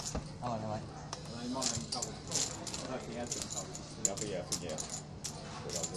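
Poker chips clack together as they are pushed and stacked.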